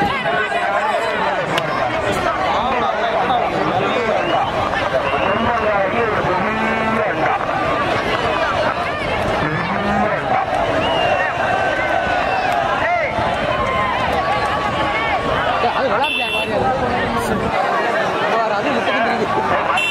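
Young men shout excitedly close by.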